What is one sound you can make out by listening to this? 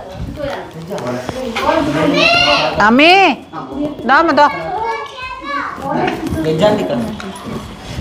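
Several women and men talk with animation close by.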